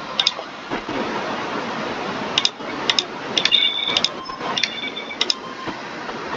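Short electronic beeps and clicks sound as game menus change.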